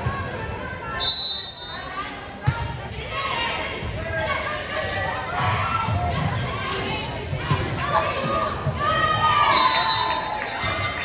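A whistle blows sharply in a large echoing gym.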